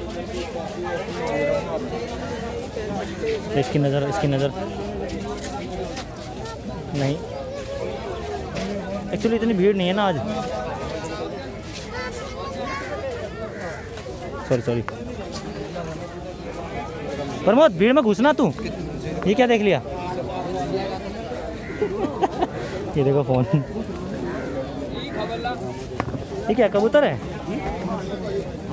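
A crowd of men chatters outdoors nearby.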